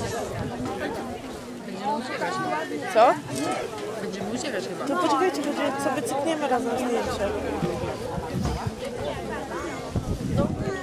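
A crowd of adults and children chatter outdoors nearby.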